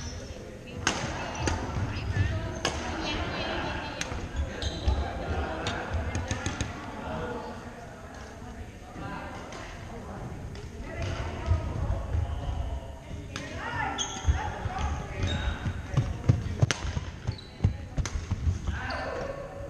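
Young men call out during play in a large echoing hall.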